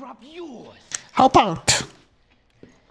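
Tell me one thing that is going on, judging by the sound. A man speaks tensely through a game's sound.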